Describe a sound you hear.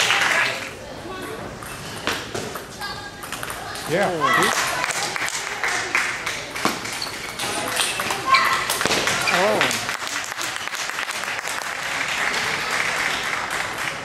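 A table tennis ball clicks back and forth on paddles and the table.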